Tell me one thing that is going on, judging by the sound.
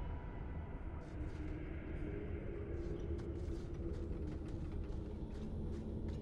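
Footsteps crunch on stone.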